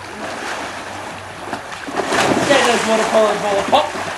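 A man jumps into a pool with a loud splash.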